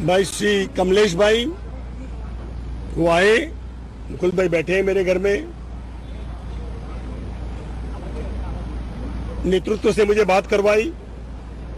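A middle-aged man speaks close by in short bursts, with pauses between.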